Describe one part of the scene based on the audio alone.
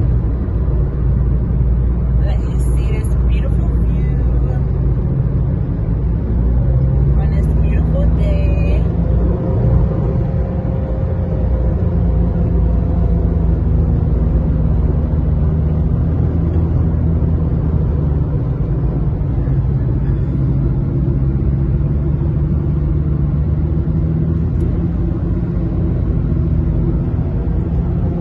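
A car drives steadily along a highway with a low, constant road rumble.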